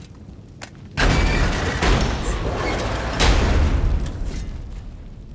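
A heavy metal gate rumbles and grinds as it is lifted.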